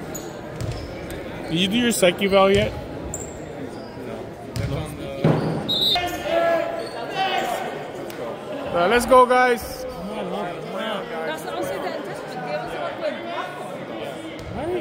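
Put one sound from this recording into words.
A volleyball thumps as players hit and bounce it.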